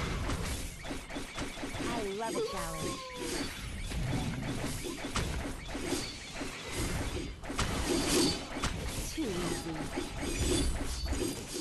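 Weapons clash and magic blasts crackle in a busy battle.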